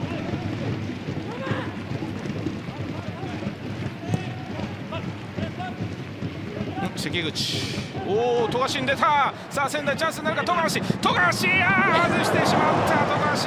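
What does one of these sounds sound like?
A large stadium crowd murmurs steadily in the open air.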